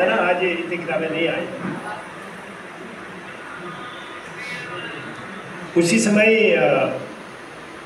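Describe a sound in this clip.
An elderly man speaks with pauses through a microphone and loudspeaker.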